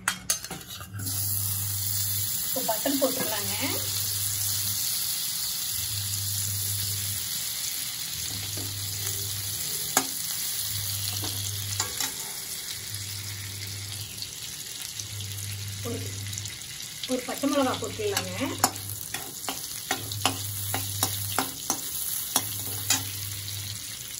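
Melting butter sizzles and hisses steadily in a hot pan.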